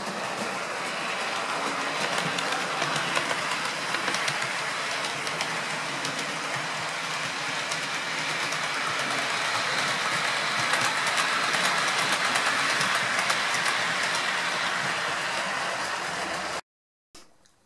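Model trains rattle and hum along the tracks.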